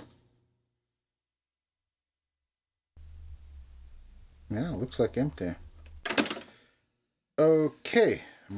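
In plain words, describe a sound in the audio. A button on a tape machine clicks.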